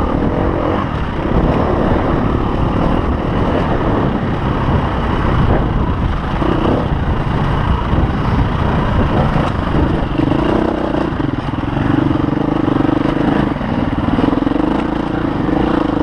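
Tyres crunch over loose dirt and stones.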